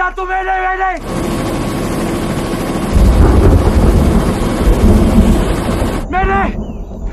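A helicopter engine roars loudly.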